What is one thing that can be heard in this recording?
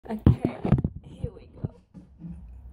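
Feet thump on a hard floor.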